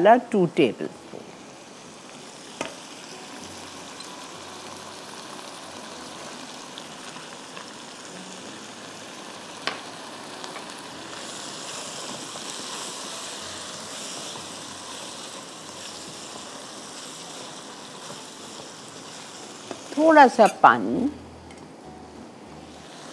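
Food sizzles gently in a frying pan.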